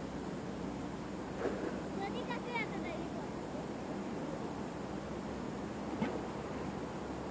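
Wind rustles the grass by the water.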